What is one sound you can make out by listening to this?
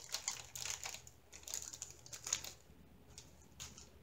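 Tiny beads pour and patter into a plastic tray.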